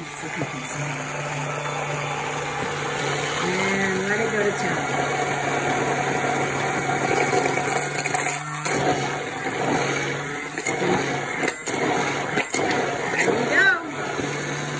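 A hand blender whirs steadily as it blends a thick mixture.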